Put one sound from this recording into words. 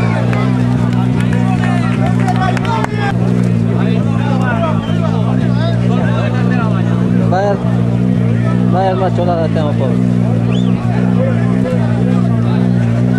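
A car engine idles with a steady low drone.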